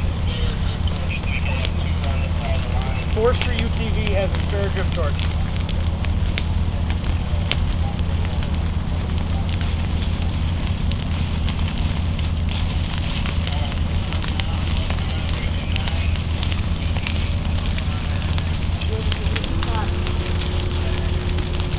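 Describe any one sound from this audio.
Flames crackle in dry grass and leaves.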